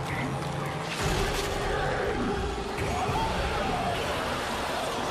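Flesh tears and splatters wetly.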